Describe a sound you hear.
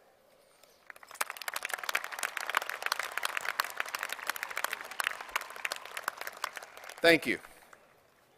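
A large crowd claps and applauds outdoors.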